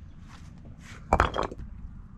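A rock is tossed onto a pile and lands with a clatter.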